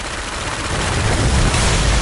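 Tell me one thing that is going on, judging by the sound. An explosion bursts with a roar.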